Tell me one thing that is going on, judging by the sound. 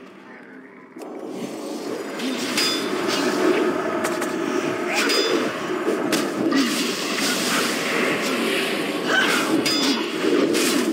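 Weapons clash and strike repeatedly in a busy fight.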